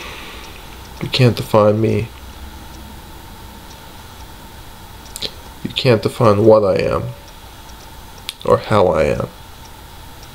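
A young man speaks calmly and close, in short bursts.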